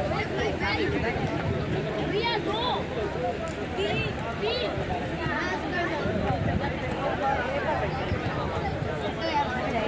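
Women talk and laugh close by.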